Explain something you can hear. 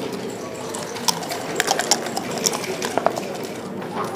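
Dice rattle and tumble across a board.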